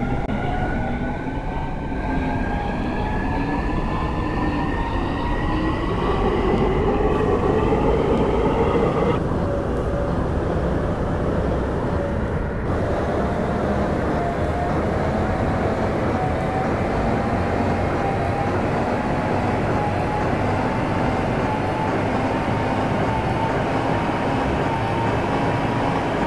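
An electric train motor whines, rising in pitch as the train speeds up.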